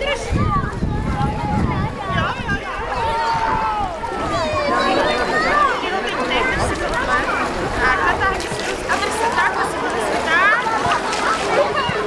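A woman talks to children close by.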